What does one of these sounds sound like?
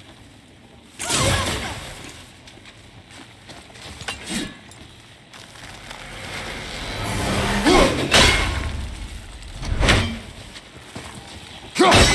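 An axe strikes and hacks at a tangle of roots.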